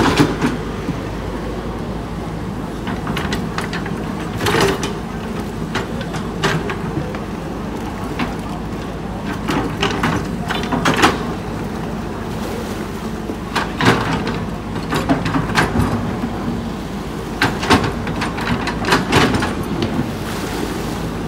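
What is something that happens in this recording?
An excavator engine rumbles steadily close by.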